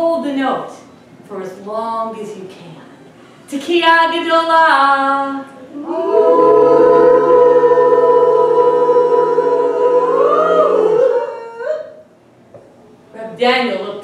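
A woman sings expressively, holding long notes.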